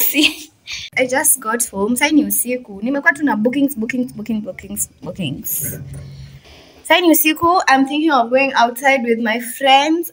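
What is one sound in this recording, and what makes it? A young woman talks close to the microphone.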